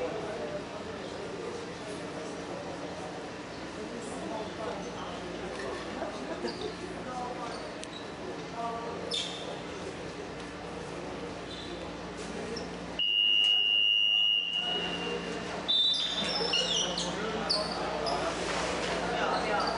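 Several young men talk at once in an echoing hall.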